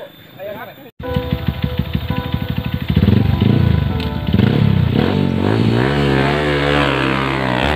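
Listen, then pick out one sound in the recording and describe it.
A motorcycle engine idles and revs loudly.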